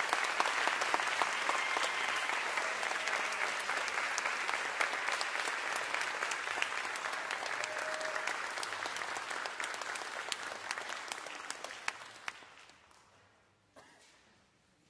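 An audience applauds in a large hall, then the applause fades away.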